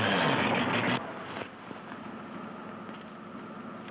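A car engine runs quietly and steadily.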